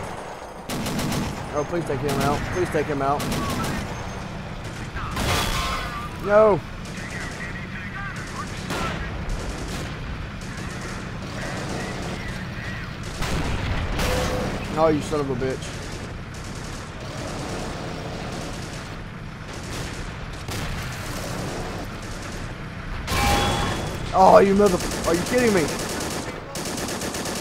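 Tank cannons fire in sharp booms.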